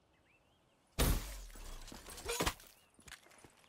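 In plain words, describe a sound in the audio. A combat knife slashes and thuds into a body with a loud, sudden blow.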